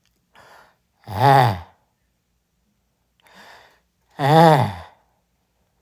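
A cat meows loudly up close.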